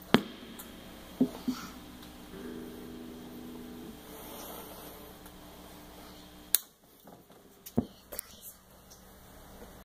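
A guitar amplifier hums faintly.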